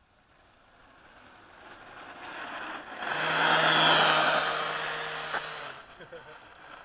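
A radio-controlled toy car whizzes past across asphalt.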